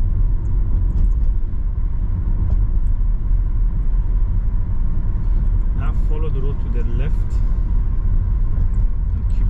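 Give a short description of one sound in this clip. A car engine hums steadily from inside the car as it drives.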